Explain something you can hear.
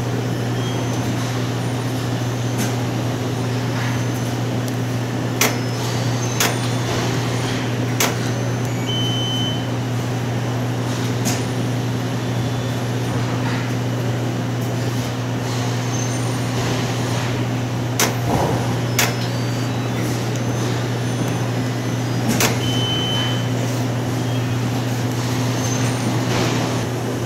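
A washing machine's control panel beeps in short high tones.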